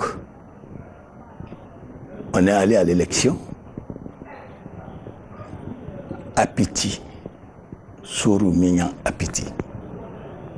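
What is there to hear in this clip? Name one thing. An elderly man speaks calmly and slowly into a clip-on microphone.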